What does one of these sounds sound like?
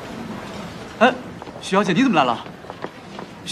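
A young woman speaks with surprise nearby.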